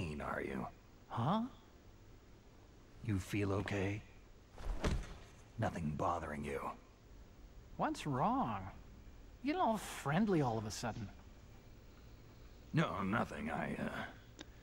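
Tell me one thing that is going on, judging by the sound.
A second man answers nervously and hesitantly.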